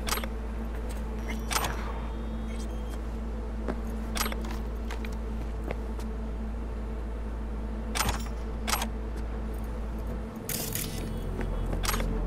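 Short sharp clicks and chimes sound as items are picked up.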